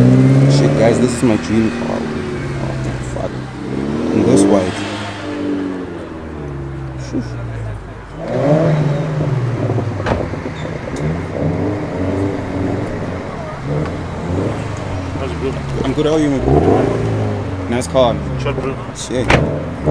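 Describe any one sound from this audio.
A sports car engine idles with a deep, uneven rumble.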